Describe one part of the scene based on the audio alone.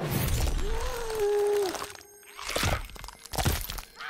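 Bones crack and crunch wetly.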